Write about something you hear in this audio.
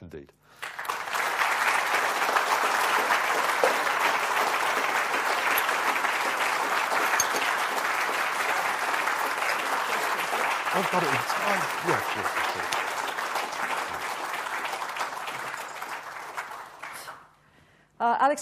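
A large audience applauds loudly in a big hall.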